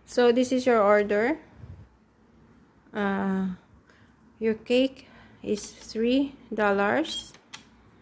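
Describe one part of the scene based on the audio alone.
Buttons on a toy cash register click under a finger.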